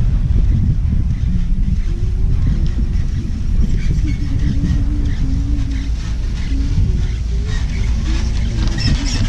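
Wind buffets loudly outdoors throughout.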